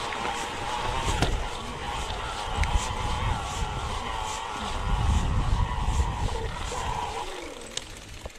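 An electric bike motor whines steadily.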